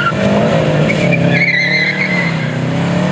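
Tyres squeal briefly on wet pavement.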